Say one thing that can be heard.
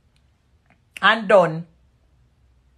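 A young woman speaks a short phrase close to the microphone.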